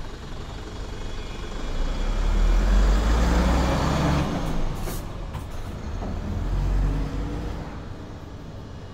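A truck engine rumbles as the truck drives past close by and moves away.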